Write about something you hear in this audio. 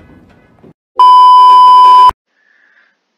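A loud, steady, high beep sounds briefly.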